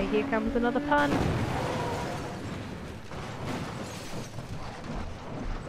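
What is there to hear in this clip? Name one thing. A car crashes hard with a loud crunch of metal and scattering debris.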